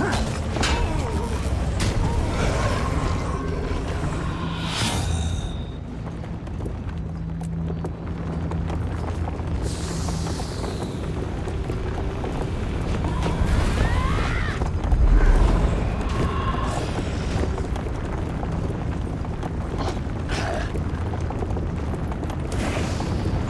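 Game music plays steadily throughout.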